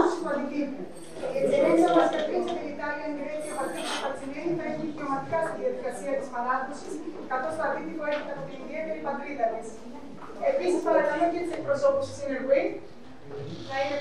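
A woman speaks calmly through a microphone in a hall.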